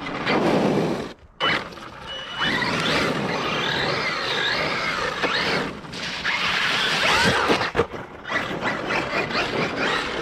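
Toy truck tyres crunch over gravel.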